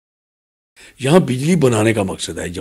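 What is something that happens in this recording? A man speaks with animation, close to microphones.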